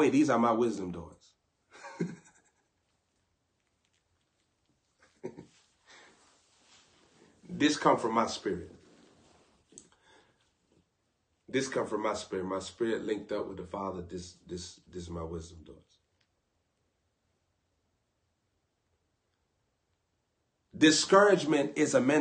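A young man talks casually and close up, in bursts with pauses.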